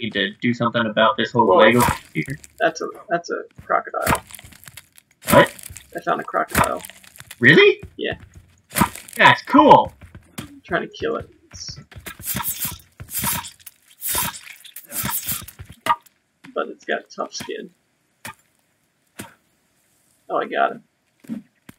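A blade chops into a carcass with dull thuds.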